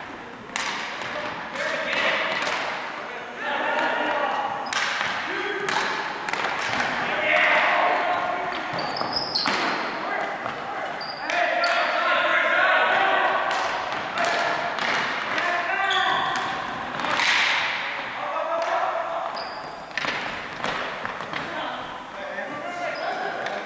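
Sticks clack and slap a ball on a hard gym floor.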